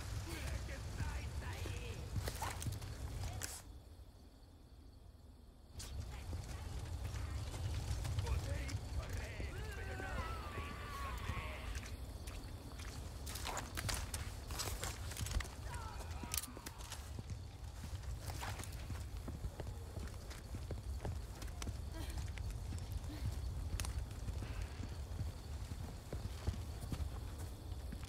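Footsteps crunch on gravel and dirt.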